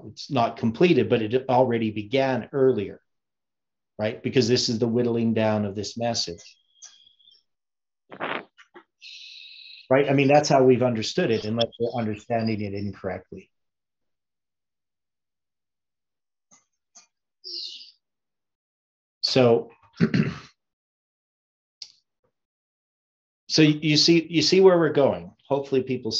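An older man talks calmly and close to the microphone, with pauses.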